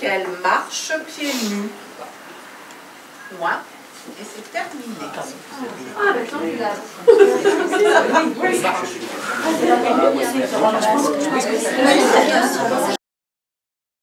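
A woman reads aloud clearly in a room.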